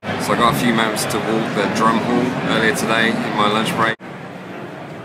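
A young man talks animatedly, close to the microphone.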